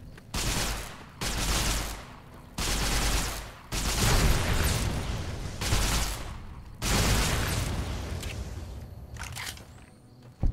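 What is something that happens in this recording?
A gun fires loud bursts that echo.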